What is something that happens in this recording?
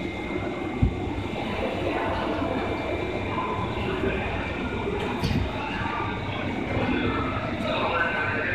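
An older electric commuter train pulls away from a station platform, its motors humming.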